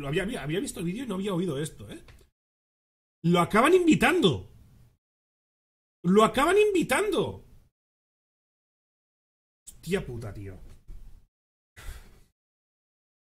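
A man speaks with animation into a close microphone, in short bursts.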